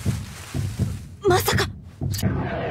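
A young woman exclaims in alarm.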